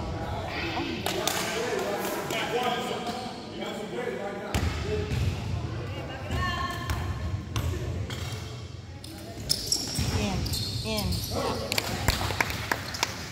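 Young players shout and call out to each other in a large echoing gym.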